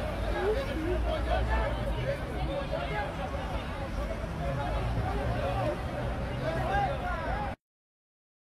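A crowd of men shouts and argues outdoors.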